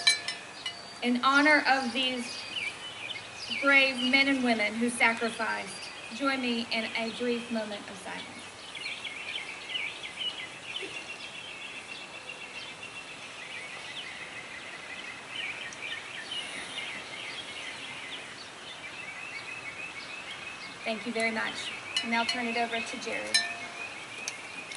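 A woman speaks calmly through a loudspeaker outdoors.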